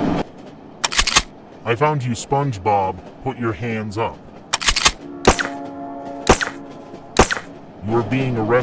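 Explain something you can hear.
Gunshots crack sharply several times.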